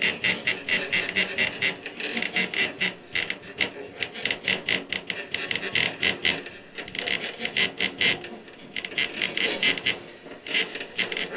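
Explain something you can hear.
A keyboard plays fast, pulsing electronic notes.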